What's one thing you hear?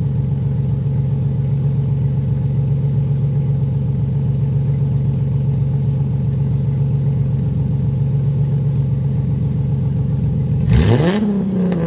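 A car engine idles with a deep rumble from the exhaust.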